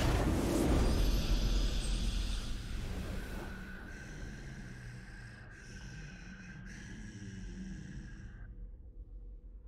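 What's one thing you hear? A triumphant fanfare plays and fades out.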